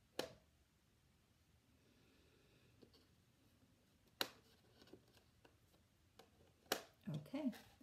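Magnetic letter tiles click against a metal tray.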